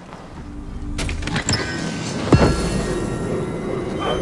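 A heavy chest lid creaks open with a thud.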